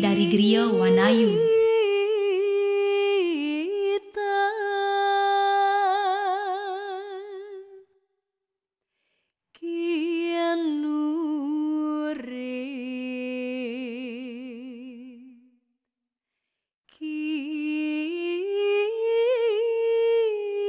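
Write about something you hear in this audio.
A man chants slowly in a long, wavering voice.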